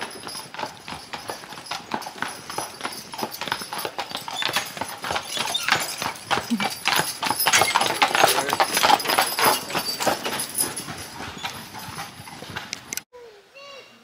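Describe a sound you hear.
Horse hooves clop steadily on a gravel road, growing louder as they pass close by.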